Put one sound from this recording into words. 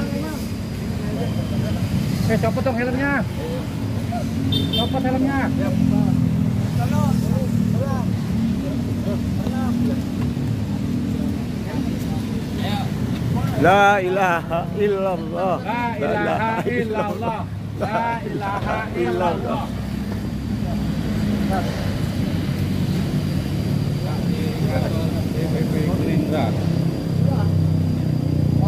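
Several men talk and call out nearby outdoors.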